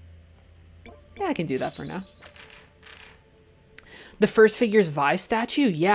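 A game menu gives a short electronic blip as the selection changes.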